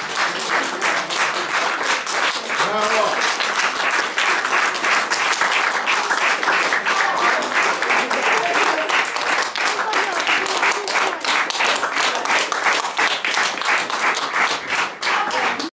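An audience applauds loudly and steadily in an echoing room.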